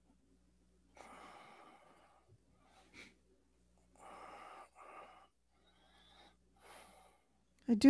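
An older woman speaks quietly over an online call.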